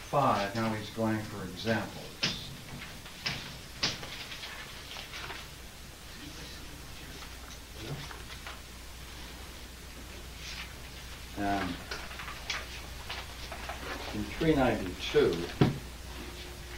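An elderly man speaks calmly nearby, pausing now and then.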